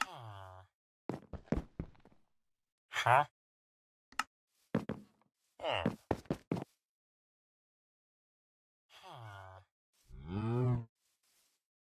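A cartoon villager murmurs in short nasal grunts.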